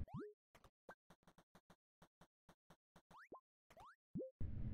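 Quick soft game footsteps patter.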